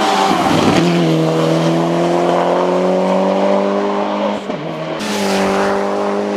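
A rally car engine roars loudly as the car speeds past and then drives away.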